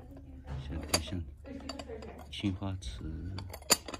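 A porcelain lid clinks as it is lifted from a container.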